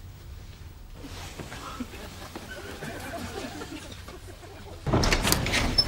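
A man speaks quietly and hurriedly close by.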